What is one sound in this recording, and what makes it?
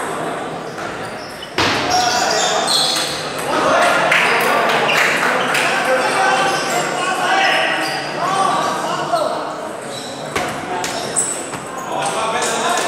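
A crowd of people chatters in an echoing hall.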